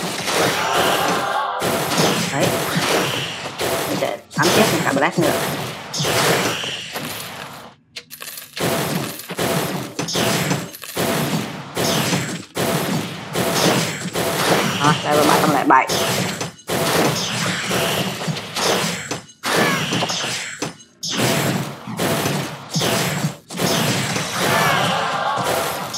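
Magical blasts and crackling spell effects burst repeatedly.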